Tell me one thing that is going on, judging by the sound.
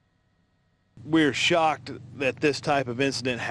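A man speaks calmly and clearly into close microphones.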